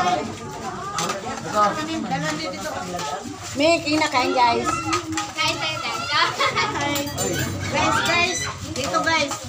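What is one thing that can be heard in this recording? Plates and serving spoons clink.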